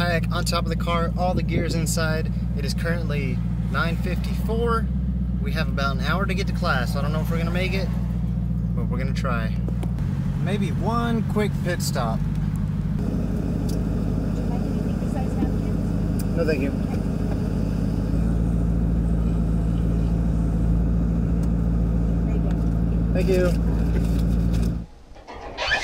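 A car engine hums low and steady inside a car.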